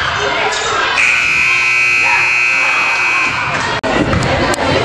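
A game buzzer sounds steadily.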